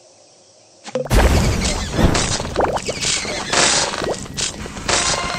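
Game bubbles pop with bright chiming effects.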